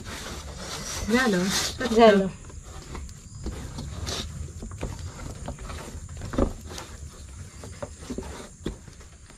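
Dough scrapes and taps against a metal plate.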